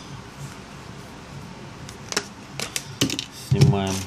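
A plastic smartphone back cover snaps as it is pried off.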